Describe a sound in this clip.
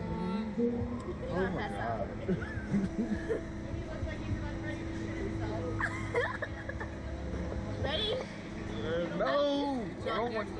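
A girl laughs and squeals excitedly close by.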